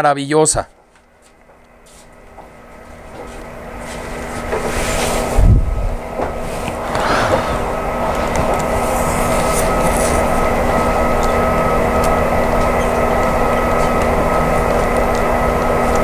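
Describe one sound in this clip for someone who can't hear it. A model diesel locomotive engine rumbles steadily, growing louder.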